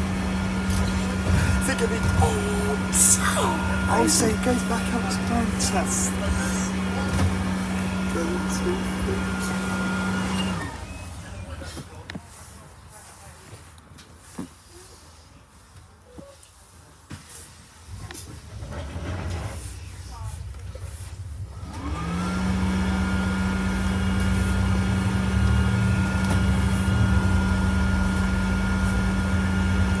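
A bus engine drones steadily from inside the bus.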